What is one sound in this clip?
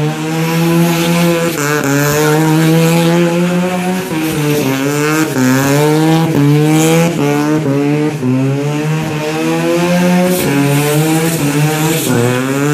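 A car engine revs hard, rising and falling in pitch over and over.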